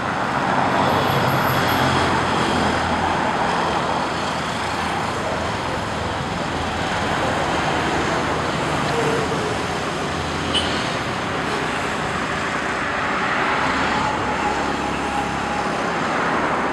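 A car drives past with a rush of tyres on tarmac.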